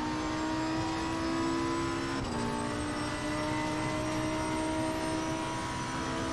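A racing car engine roars at high revs, briefly dropping in pitch at a gear change.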